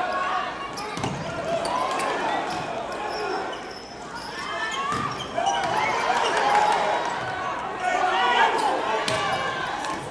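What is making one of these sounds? A volleyball is struck hard with sharp smacks.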